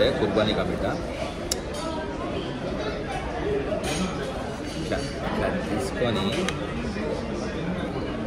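A spoon scrapes a bowl.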